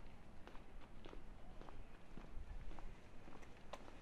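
A pedestrian's footsteps pass nearby on a paved street.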